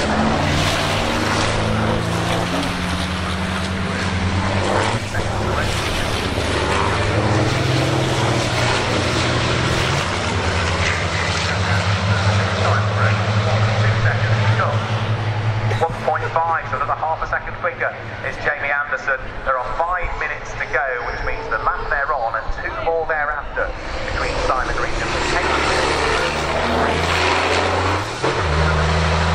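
Racing truck engines roar loudly and rev up and down nearby.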